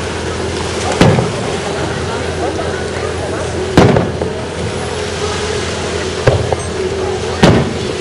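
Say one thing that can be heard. Fireworks burst with loud booms that echo away.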